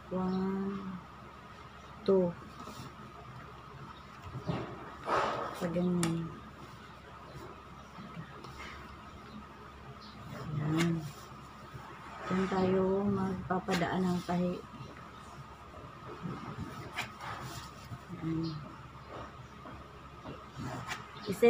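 A pencil scratches along paper in short strokes.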